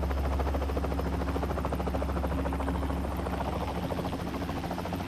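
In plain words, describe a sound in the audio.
Helicopters drone overhead.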